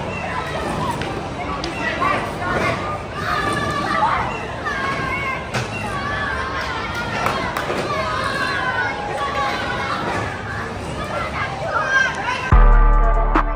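Riders scream and shout on a thrill ride.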